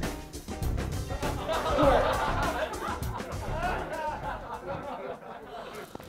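A young man laughs behind his hand.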